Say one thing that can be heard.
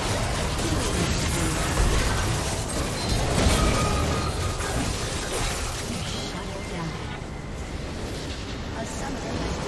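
Spell and combat effects crackle, whoosh and clash in a busy fight.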